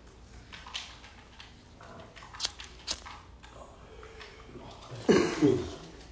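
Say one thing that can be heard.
A lighter clicks close by.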